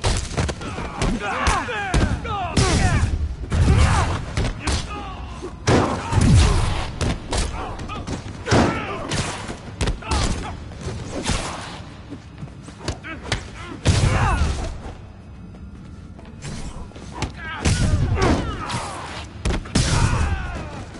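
Men grunt and shout as they are hit.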